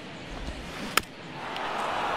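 A baseball smacks sharply into a catcher's mitt.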